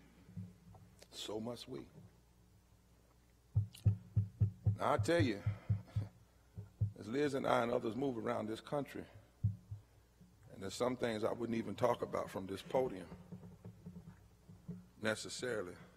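A man speaks slowly and forcefully into a microphone.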